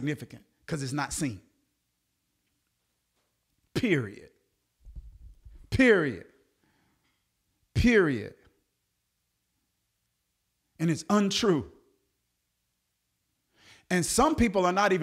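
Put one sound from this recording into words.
A man speaks close to a microphone in short bursts with pauses.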